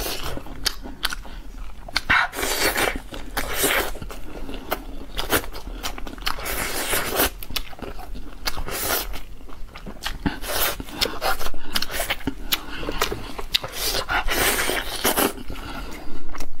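Meat tears off a bone in short ripping bursts.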